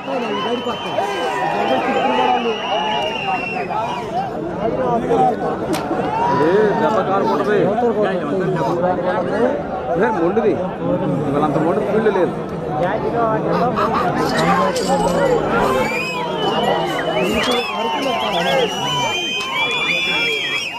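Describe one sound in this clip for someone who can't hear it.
Men close by shout and urge on the animals.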